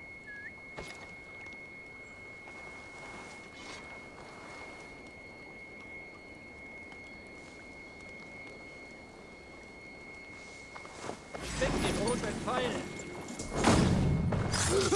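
Tall dry grass rustles as someone moves through it.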